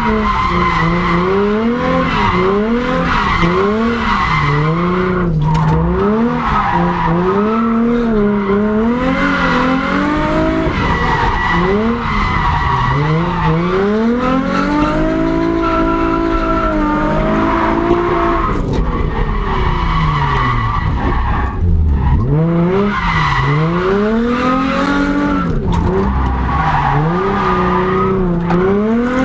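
Tyres squeal on tarmac as the car slides.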